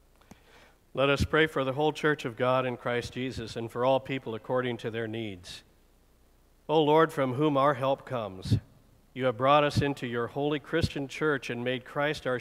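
A man chants aloud at a distance in a reverberant room.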